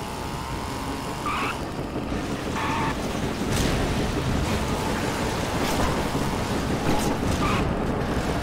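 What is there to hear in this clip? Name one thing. A small car's engine rumbles low and steady.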